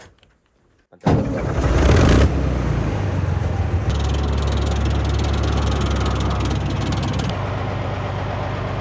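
An armoured vehicle's engine rumbles loudly.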